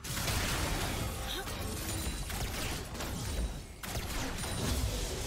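Game spell effects and weapon hits crackle and clash in a busy fight.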